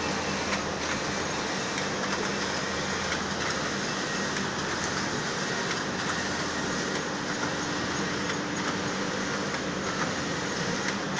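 Textile machines whir and clatter steadily all around.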